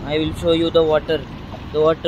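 Small waves lap at the shore.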